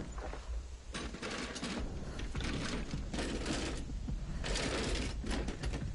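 Hands rummage through a chest with a steady rattling.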